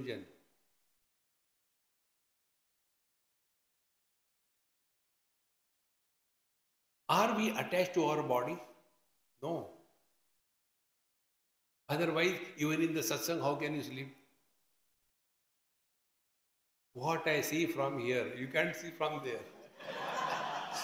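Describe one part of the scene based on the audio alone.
An elderly man speaks calmly into a nearby microphone, in short bursts with pauses.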